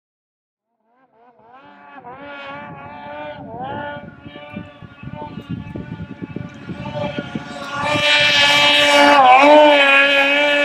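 A snowmobile engine whines in the distance and grows louder as it approaches.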